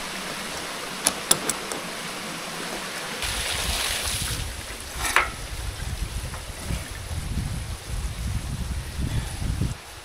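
A shallow stream trickles nearby.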